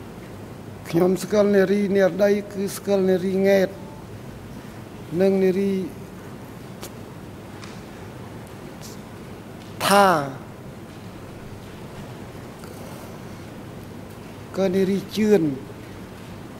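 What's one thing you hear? An elderly man speaks slowly in short bursts into a microphone.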